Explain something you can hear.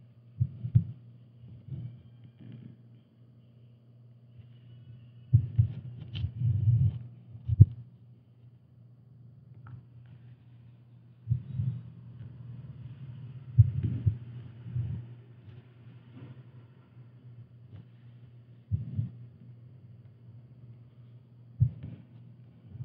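Fingers softly bump against an embroidery hoop.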